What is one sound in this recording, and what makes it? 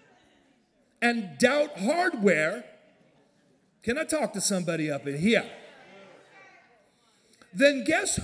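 A middle-aged man speaks loudly and with animation through a microphone in a large echoing hall.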